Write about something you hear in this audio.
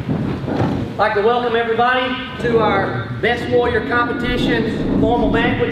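A man speaks through a microphone and loudspeakers in an echoing room.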